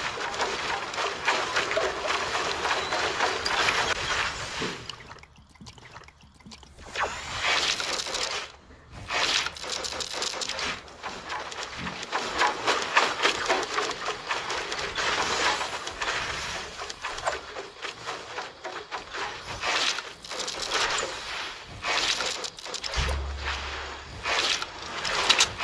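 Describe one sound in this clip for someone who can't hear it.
Wooden walls and ramps snap into place with quick clattering knocks.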